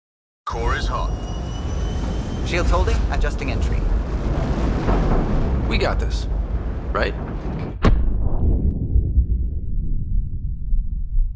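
A spacecraft's engine rumbles deeply.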